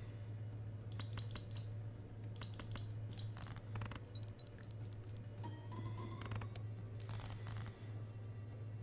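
Electronic card game sound effects click and chime.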